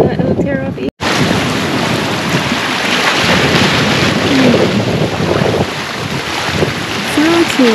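Waves splash against rocks outdoors in wind.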